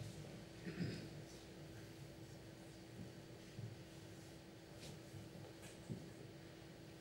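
Billiard balls thud softly off the cushions.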